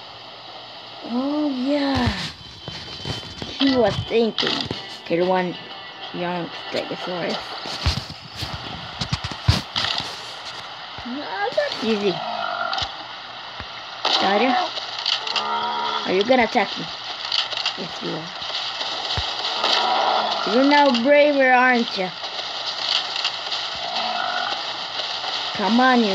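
A boy talks with animation close to the microphone.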